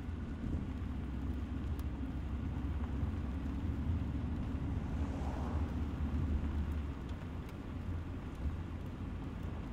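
A car drives through a tunnel with a low rumble.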